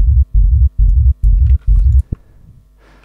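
A deep bass synth throbs in short, even pulses.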